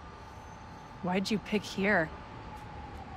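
A young man speaks briefly into a microphone.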